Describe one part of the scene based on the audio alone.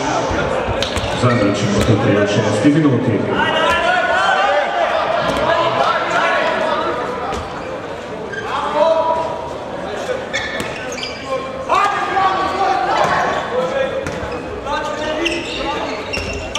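A ball bounces on a wooden floor.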